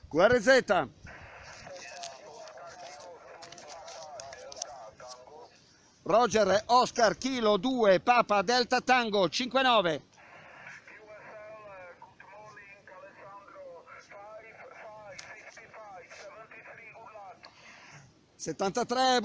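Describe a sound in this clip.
A man's voice answers through a small radio loudspeaker, thin and crackly.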